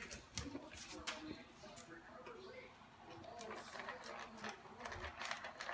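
A dog crunches dry kibble from a bowl.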